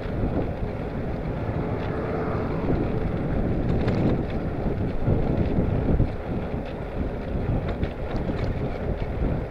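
Wind rushes and buffets loudly past a moving bicycle.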